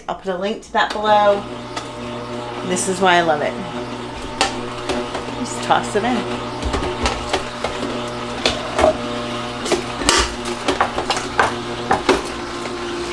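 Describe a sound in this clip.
An electric juicer hums steadily.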